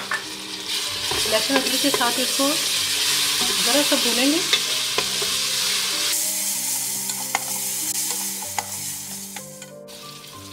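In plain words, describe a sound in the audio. Onions sizzle loudly in hot oil.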